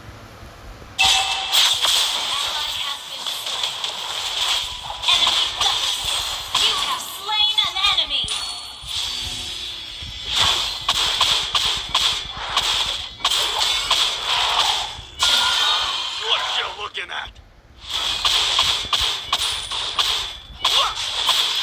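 Magic blasts whoosh and crackle in a fast game battle.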